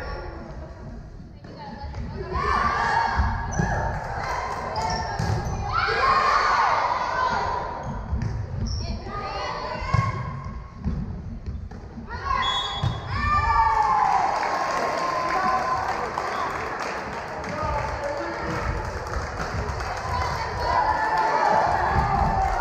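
Sneakers squeak on a wooden gym floor.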